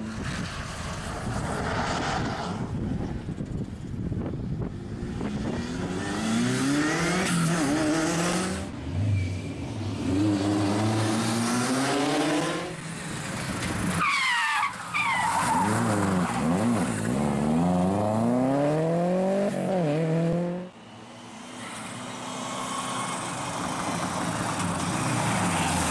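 A rally car engine roars and revs hard, shifting gears as the car speeds past.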